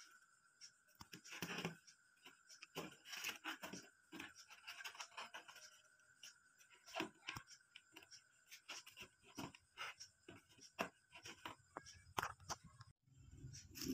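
Dry woven strips crackle and rustle as hands handle a basket.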